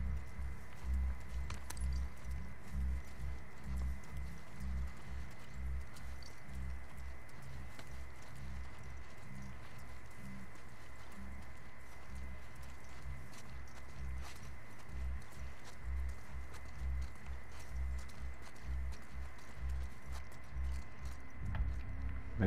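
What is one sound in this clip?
Soft footsteps crunch underfoot.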